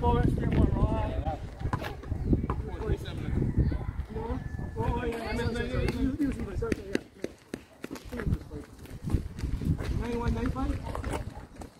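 A basketball bounces on concrete.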